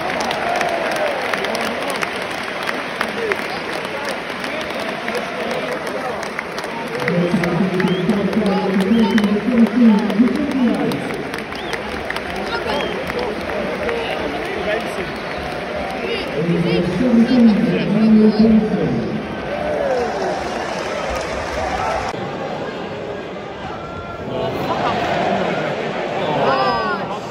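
A large stadium crowd murmurs and roars steadily, outdoors.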